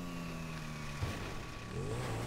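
A motorcycle crashes to the ground.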